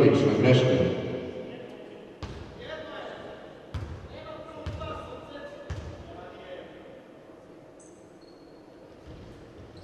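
A basketball bounces on a hard court floor in an echoing hall.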